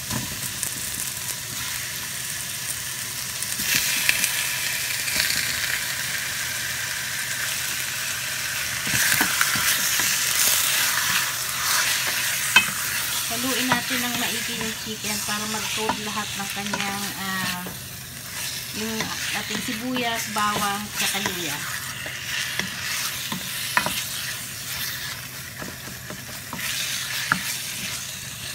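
Meat sizzles and crackles in a hot pan.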